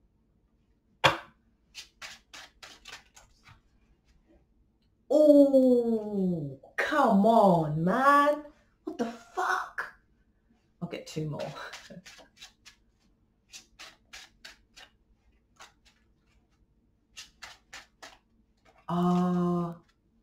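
Playing cards rustle and tap as they are shuffled and handled.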